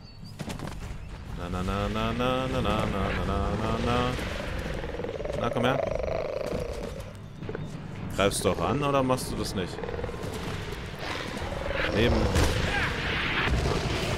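A monster roars and growls.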